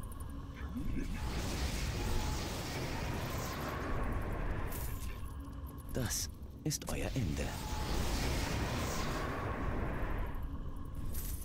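Magic flames roar and whoosh in loud bursts.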